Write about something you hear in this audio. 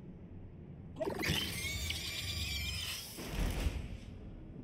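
A deep creature growl rumbles and snarls.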